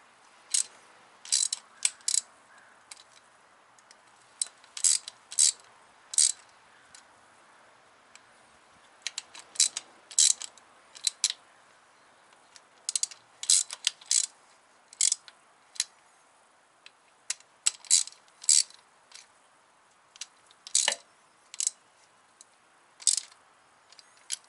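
Metal tools clink against engine parts.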